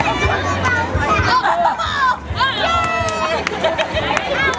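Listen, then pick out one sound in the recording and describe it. A child cheers and shouts excitedly.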